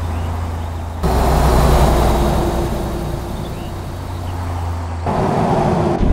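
A truck rolls past on the road outside.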